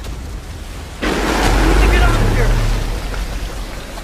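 Water splashes and churns loudly close by.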